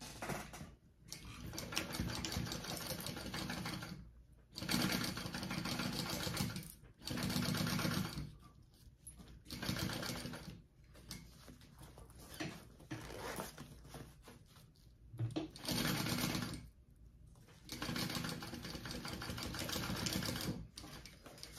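A sewing machine whirs in bursts of steady stitching.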